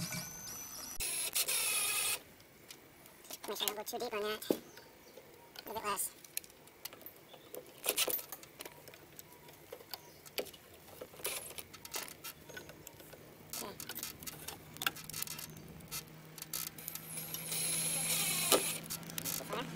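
A power drill whirs as it drives screws into wood.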